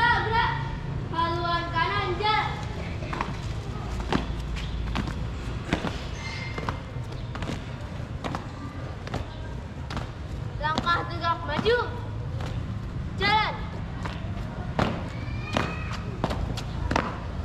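Shoes stamp in step on paving stones.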